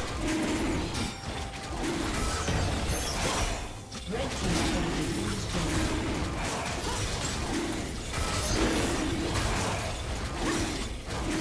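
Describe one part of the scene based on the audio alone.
Game spell effects and weapon hits clash rapidly in a fight.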